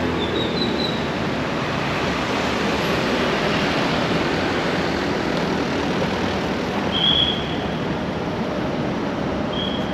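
A car drives slowly by close at hand.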